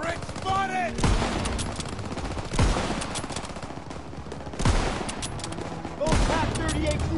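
A rifle fires loud single shots, each followed by a short echo.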